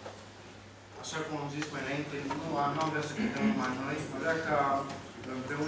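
A man speaks calmly through a loudspeaker in an echoing hall.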